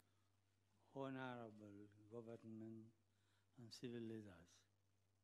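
An elderly man speaks slowly and softly into a microphone, heard faintly.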